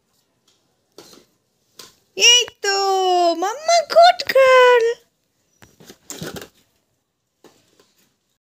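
Plastic rings clack softly as a toddler stacks a toy.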